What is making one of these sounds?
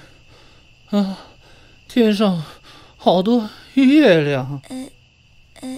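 A man speaks weakly and dazedly.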